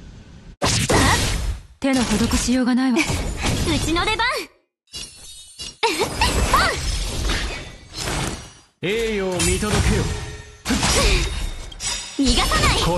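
Weapons slash and clang in quick bursts.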